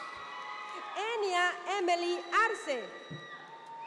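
A woman speaks loudly over a loudspeaker in a large echoing hall.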